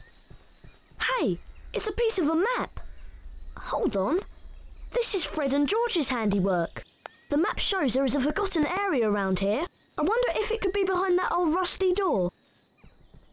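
A young boy speaks with animation, as a game character's voice.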